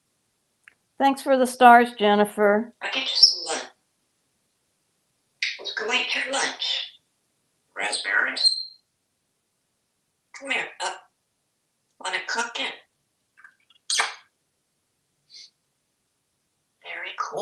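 A parrot chatters in short bursts like speech.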